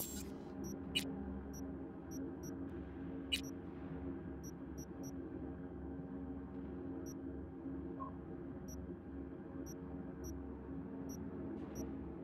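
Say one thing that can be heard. Soft interface clicks and beeps tick now and then.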